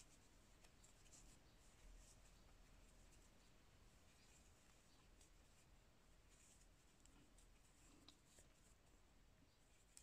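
A crochet hook clicks softly and yarn rustles as it is pulled through stitches.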